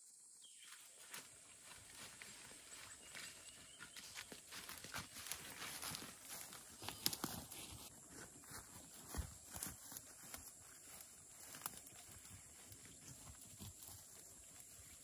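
Leaves and branches rustle as a man pushes through dense undergrowth.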